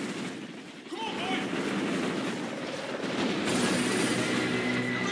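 A helicopter's rotor thumps loudly nearby.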